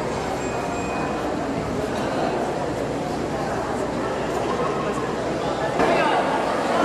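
A crowd murmurs softly outdoors.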